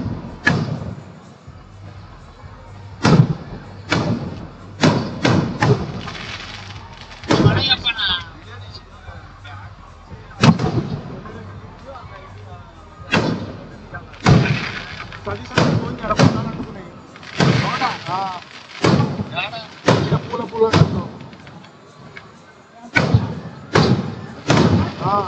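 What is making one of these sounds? Fireworks burst with loud booming bangs, echoing outdoors.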